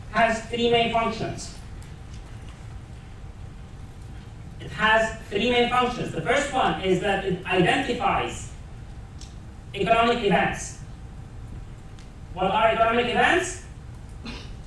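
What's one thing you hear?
A man lectures calmly through a microphone in a room with a slight echo, pausing between phrases.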